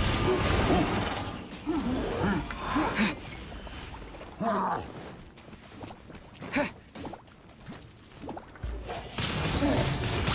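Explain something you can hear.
Sword strikes swish and clang.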